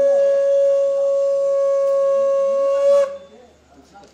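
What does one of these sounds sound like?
A man blows a conch shell in a long, steady, loud note.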